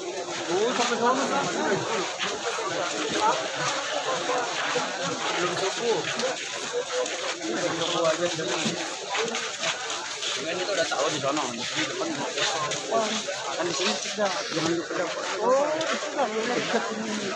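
A large crowd of men talks and shouts all around, close by.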